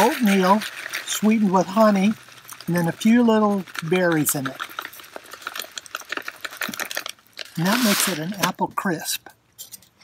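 Dry food rustles as it pours from a plastic pouch into a metal cup.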